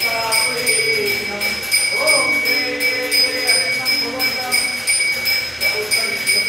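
Men chant together.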